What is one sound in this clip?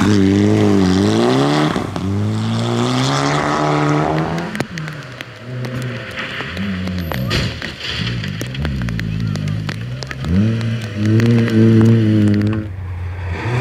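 Gravel sprays and crunches under a rally car's tyres.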